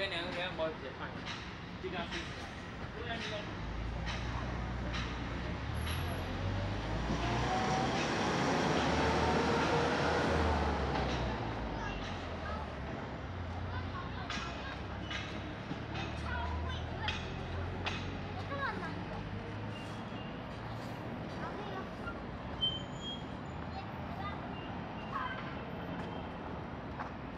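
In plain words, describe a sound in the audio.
Outdoors, busy street traffic hums steadily.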